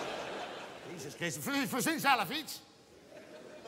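A man sings out loudly and dramatically through a microphone.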